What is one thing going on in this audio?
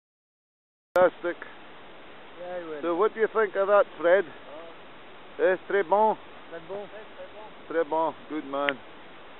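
A river flows steadily nearby.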